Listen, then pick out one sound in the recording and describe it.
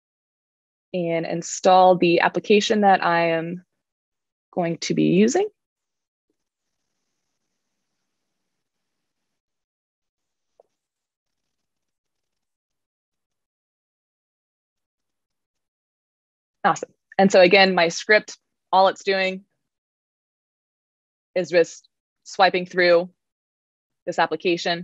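A woman speaks calmly over an online call, pausing between phrases.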